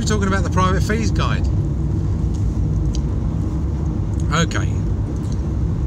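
A car engine hums steadily with low road rumble.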